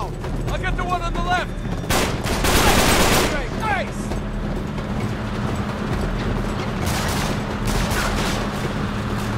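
Truck engines rumble steadily nearby.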